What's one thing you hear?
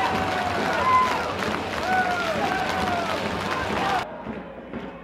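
Football players shout in celebration outdoors.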